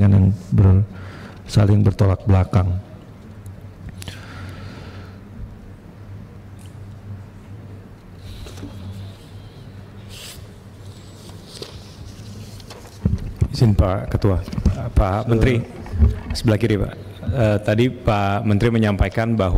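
A man reads out calmly through a microphone.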